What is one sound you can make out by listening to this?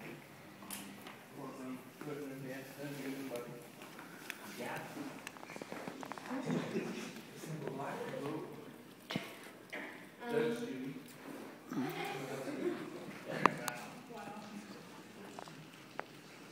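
A young woman speaks into a microphone over a loudspeaker in an echoing hall.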